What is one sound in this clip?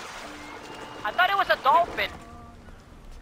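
A man grunts as he climbs out of the water.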